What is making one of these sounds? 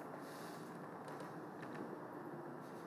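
A small clip-on microphone rustles and knocks as it is handled.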